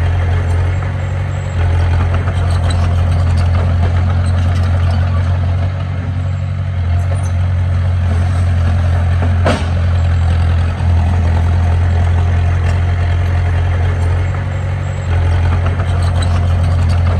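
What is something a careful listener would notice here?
A diesel engine rumbles steadily as a small bulldozer works nearby.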